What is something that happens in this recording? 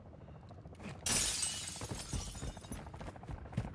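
Window glass shatters loudly and tinkles down.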